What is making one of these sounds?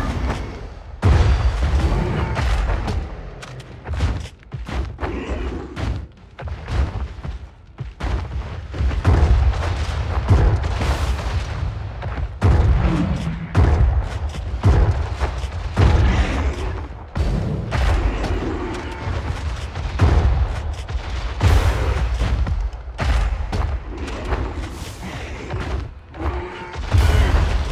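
Shotgun blasts boom again and again.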